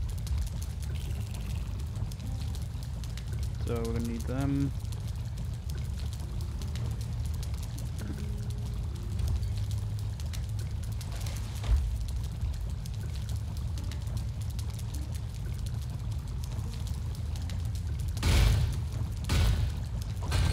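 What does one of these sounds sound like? A fire roars and crackles steadily.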